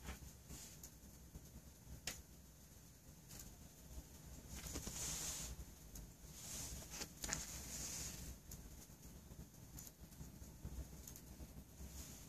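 Candle flames crackle and sputter softly.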